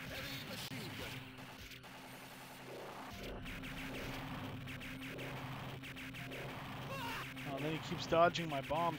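Rapid arcade gunfire crackles.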